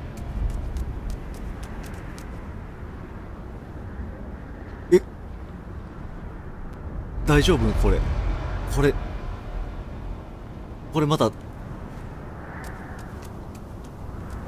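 Footsteps patter quickly across sand.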